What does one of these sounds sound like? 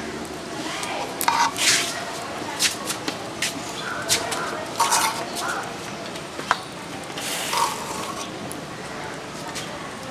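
A metal spoon scrapes and clinks against a cooking pot.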